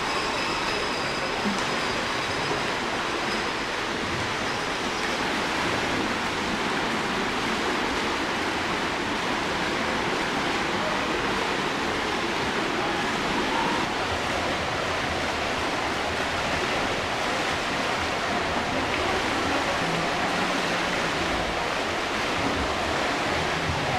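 A crowd murmurs and chatters, echoing in a large hall.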